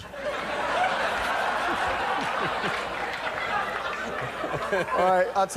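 A man laughs heartily close by.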